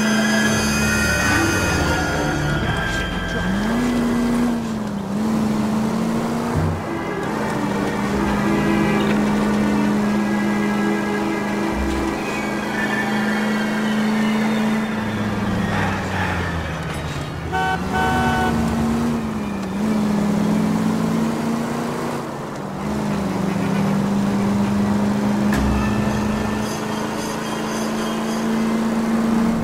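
A 1940s sedan's engine hums as it cruises along a street, its pitch dipping and rising again.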